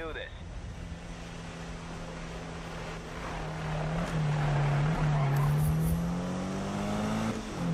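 A car engine revs and roars as the car speeds by.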